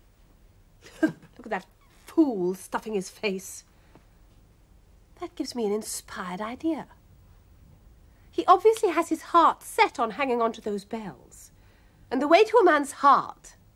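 A woman speaks theatrically, close by.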